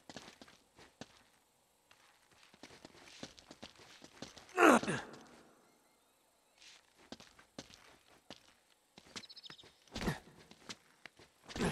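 Footsteps crunch on leaves and dirt.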